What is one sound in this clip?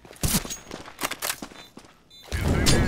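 A rifle fires in short, sharp bursts.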